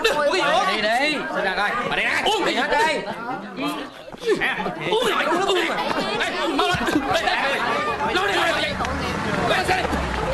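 A crowd of men and women shout in agitation close by.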